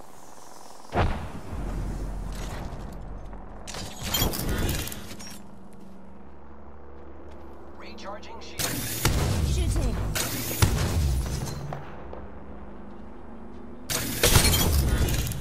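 A rifle fires loud, booming single shots.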